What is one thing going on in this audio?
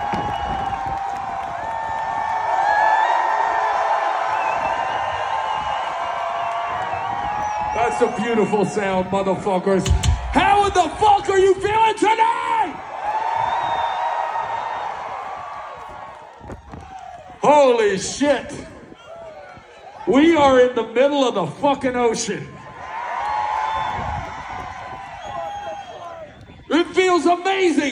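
A large crowd cheers and shouts outdoors.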